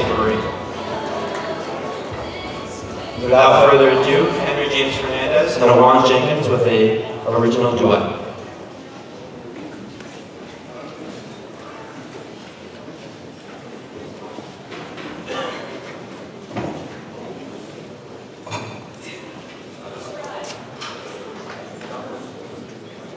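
A large crowd murmurs and chatters in a hall.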